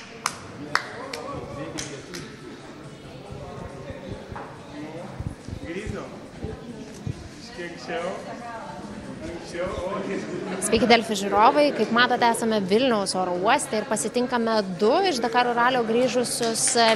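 A crowd of men and women chatter and laugh in a large echoing hall.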